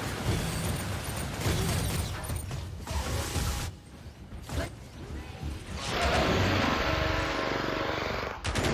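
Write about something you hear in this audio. Rapid gunfire blasts from a weapon, echoing in a metal space.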